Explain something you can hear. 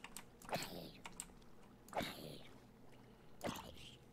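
A zombie groans nearby.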